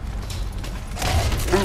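A magic spell crackles and whooshes.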